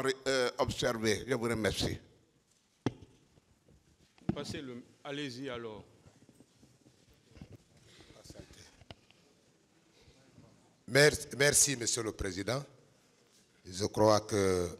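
An elderly man speaks calmly into a microphone, in pauses.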